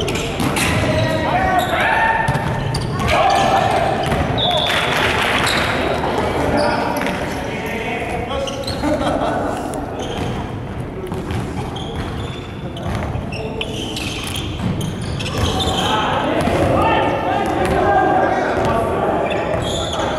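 Young men and women call out and chatter in a large echoing hall.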